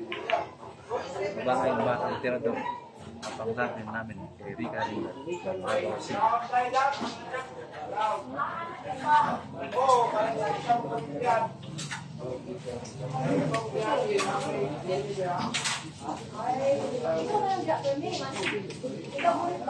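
A crowd of people murmurs and chatters.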